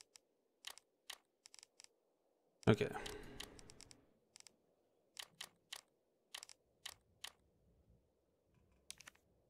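Short soft menu clicks tick now and then.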